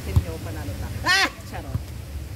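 A young woman squeals loudly.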